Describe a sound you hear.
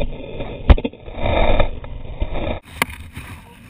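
A dirt bike crashes and tumbles through loose dirt with heavy thuds.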